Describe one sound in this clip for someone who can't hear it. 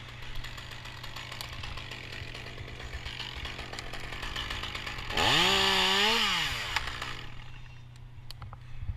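A chainsaw engine idles with a low steady rumble.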